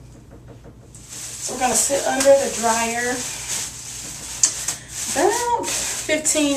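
A plastic shower cap crinkles and rustles.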